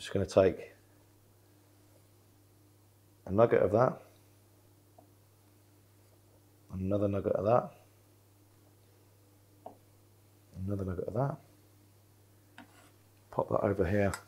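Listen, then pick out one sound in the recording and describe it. A knife chops through soft vegetables on a wooden board.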